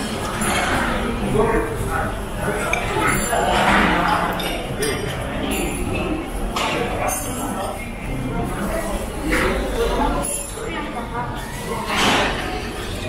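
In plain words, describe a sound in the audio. A crowd of adults and children chatters in a busy, echoing room.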